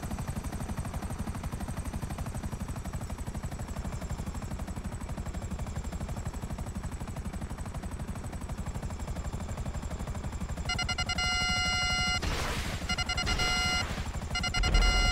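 Helicopter rotor blades thump rapidly and steadily overhead.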